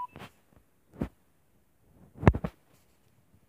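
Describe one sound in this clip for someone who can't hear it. Small plastic toy parts click and knock against a table as they are handled.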